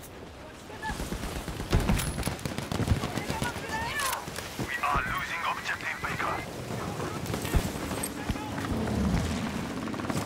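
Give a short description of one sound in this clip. Gunfire and explosions crack and thud in the distance.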